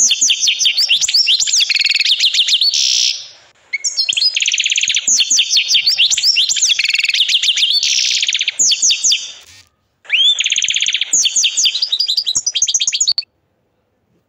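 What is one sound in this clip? A canary sings a loud, rapid trilling song close by, then falls silent.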